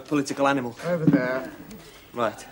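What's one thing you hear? A middle-aged man reads out in a clear, deliberate voice.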